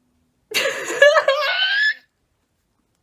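A young woman laughs close to the microphone.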